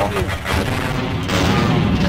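A pistol fires a shot.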